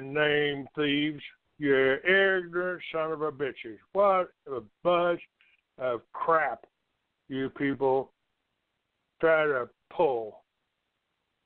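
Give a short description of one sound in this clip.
A man speaks with animation over a phone line.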